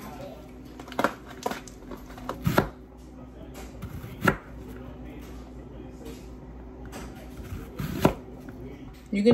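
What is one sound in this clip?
A knife chops through an onion on a cutting board.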